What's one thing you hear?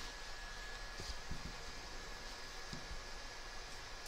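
Scissors snip through fabric close by.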